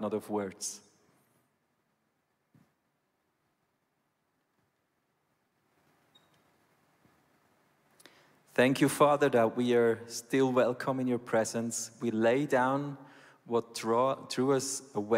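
A man speaks calmly and earnestly into a microphone, pausing in between.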